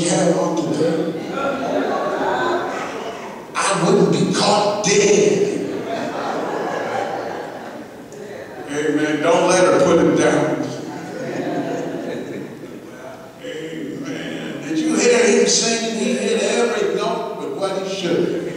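An elderly man preaches with animation through a microphone in a large echoing hall.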